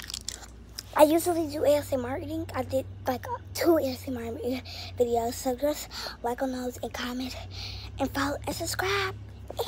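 A young boy sings loudly close to a phone microphone.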